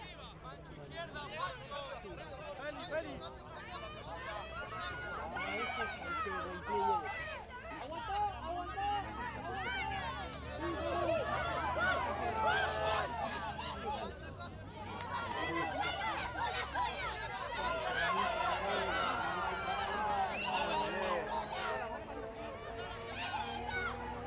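Many boys shout and call out to each other outdoors.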